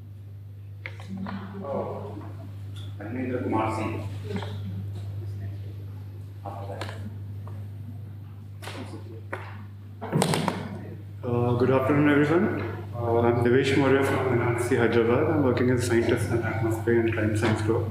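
A man speaks calmly through a microphone, lecturing.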